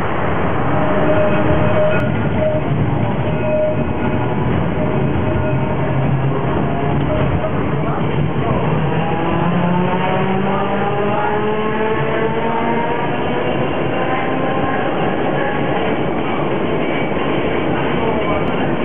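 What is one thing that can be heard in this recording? Tram wheels rumble and rattle on rails, heard from inside the car.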